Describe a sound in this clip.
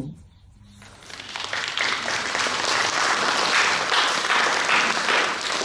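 A crowd applauds and cheers in an echoing hall.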